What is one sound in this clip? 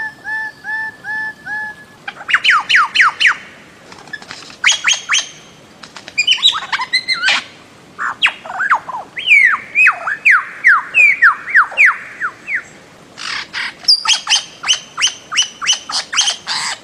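A bird calls loudly with rapid, repeated sharp whistling notes.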